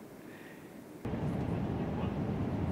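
An aircraft cabin hums steadily.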